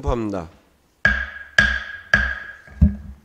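A wooden gavel strikes a block three times.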